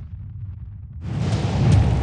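A fiery blast bursts with a rushing roar.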